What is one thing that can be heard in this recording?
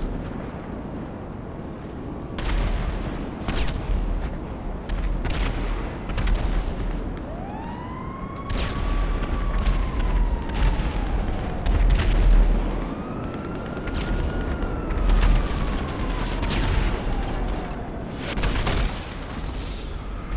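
Footsteps run quickly on hard pavement.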